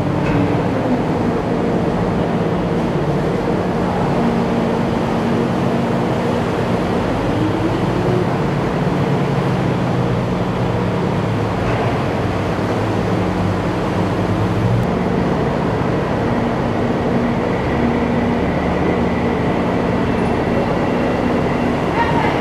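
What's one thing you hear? Water churns and splashes around an amphibious assault vehicle's hull.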